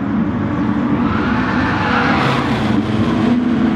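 A car engine whooshes past with a rising and falling pitch.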